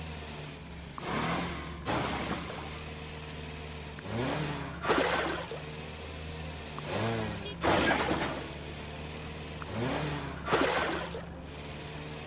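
Soil churns and thuds as a plough digs through it.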